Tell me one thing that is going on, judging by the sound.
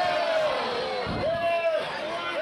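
A wrestler's body thuds onto the ring mat.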